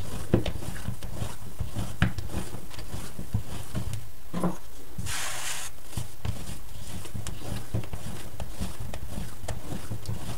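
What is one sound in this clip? Hands knead and slap soft dough on a countertop.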